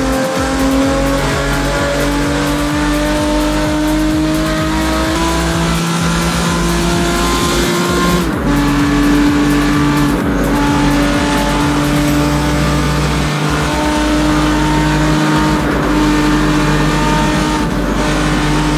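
A sports car engine roars at high revs, its pitch slowly climbing.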